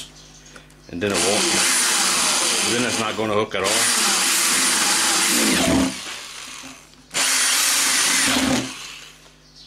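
An electric drill whirs as it bores into metal.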